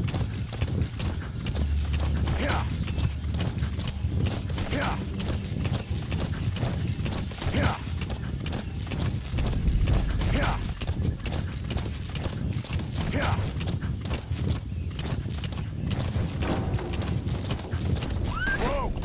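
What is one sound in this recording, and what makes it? Hooves pound rapidly on a dirt track as a horse gallops.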